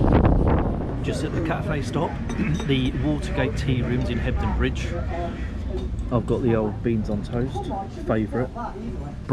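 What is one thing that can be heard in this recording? A middle-aged man talks calmly and close to the microphone.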